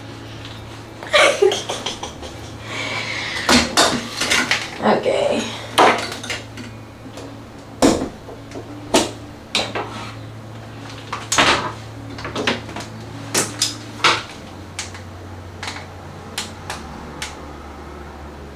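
Hair tools clatter and knock on a hard counter.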